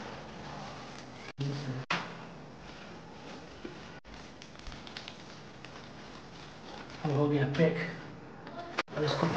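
Thin plastic film crinkles as it is peeled and handled.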